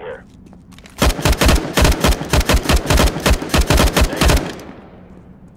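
A rifle fires in rapid bursts at close range.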